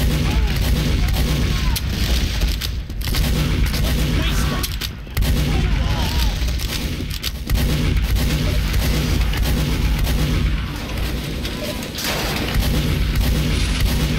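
Shotgun blasts boom in quick bursts.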